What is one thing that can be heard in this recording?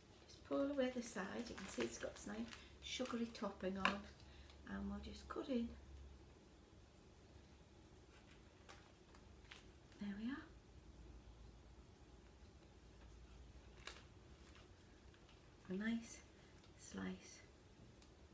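An older woman talks calmly close by.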